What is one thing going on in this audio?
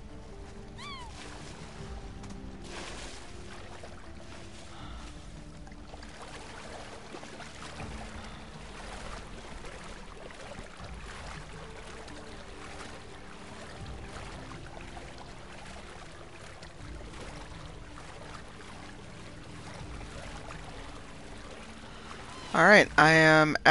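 Water splashes as large birds wade through it.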